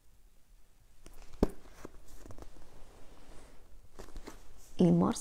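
Paper and cloth rustle as things are handled close by.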